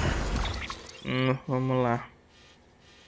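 A man speaks briefly and closely into a microphone.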